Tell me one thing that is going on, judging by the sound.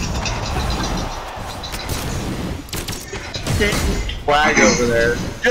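Video game fighters clash with sharp hits and whooshes.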